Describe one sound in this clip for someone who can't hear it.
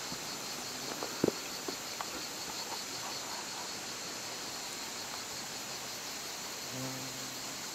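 A stream trickles over rocks nearby.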